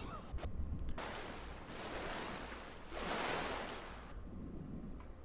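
Water splashes as a swimmer strokes at the surface.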